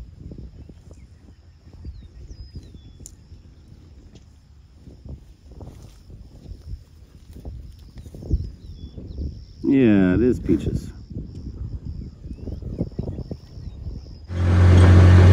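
A bison tears and chews grass close by.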